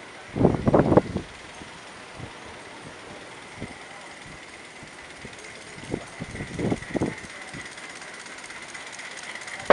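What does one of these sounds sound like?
Steam hisses steadily from a small engine.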